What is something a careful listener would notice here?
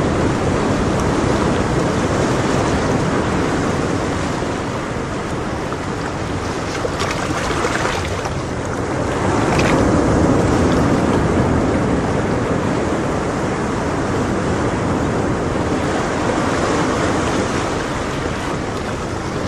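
Water from an aquarium pump bubbles and gurgles steadily.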